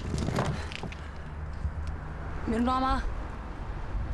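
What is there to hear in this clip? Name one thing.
A young woman speaks softly and warmly close by.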